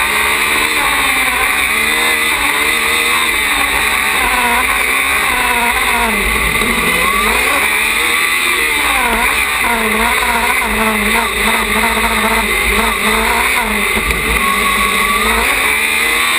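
A racing car engine revs up and down loudly, close by.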